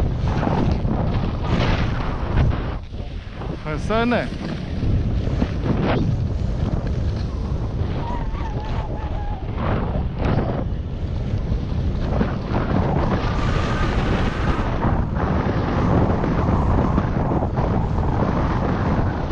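Skis hiss and scrape over snow.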